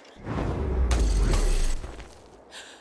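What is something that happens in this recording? A grappling line whooshes out and catches.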